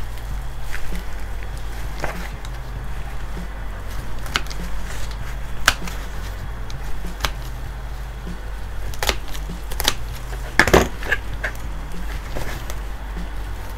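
Gloved hands rustle and crackle through dry roots and soil.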